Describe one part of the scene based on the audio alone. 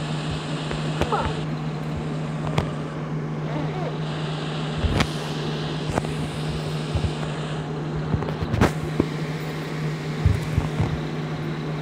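A simulated truck engine drones steadily.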